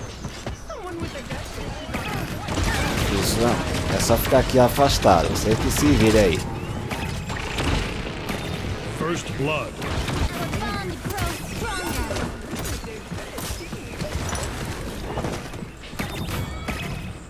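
Video game weapons fire in rapid bursts.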